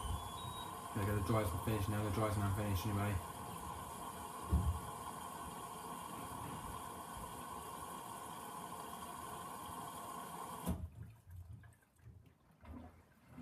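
Water and laundry slosh inside a turning washing machine drum.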